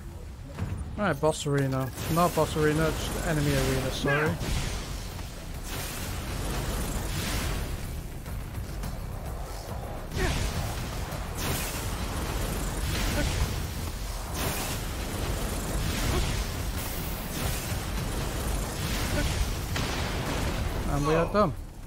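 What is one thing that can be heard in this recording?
Fiery magic blasts whoosh and roar.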